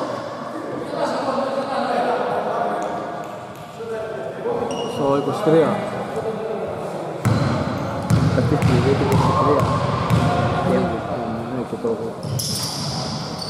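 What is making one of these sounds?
Men talk and call out in a large echoing hall.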